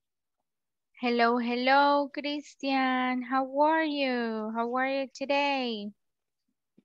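A young woman speaks clearly into a headset microphone over an online call.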